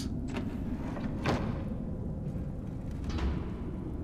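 A heavy wooden door creaks open.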